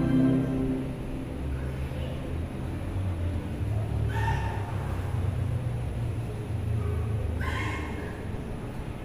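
A man speaks calmly through a loudspeaker in an echoing hall.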